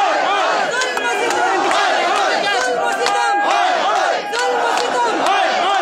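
A woman shouts slogans close by.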